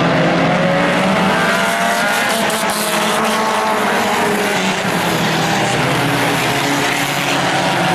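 Sport compact race cars roar around a dirt oval.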